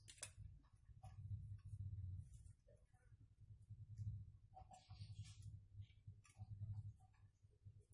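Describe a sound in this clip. Wire rustles as it is twisted around a rod.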